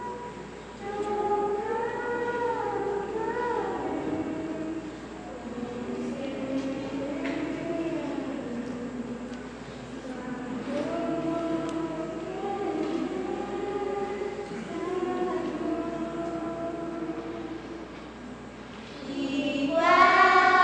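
A children's choir sings together, heard through a loudspeaker.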